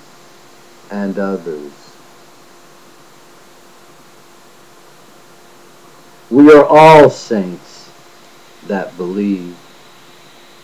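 A middle-aged man speaks close to a microphone in short bursts.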